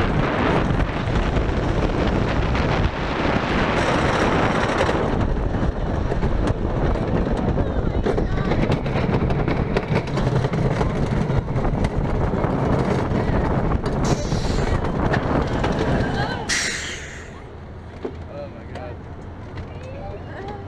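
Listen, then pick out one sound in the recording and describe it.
A roller coaster train rumbles and clatters loudly along a wooden track.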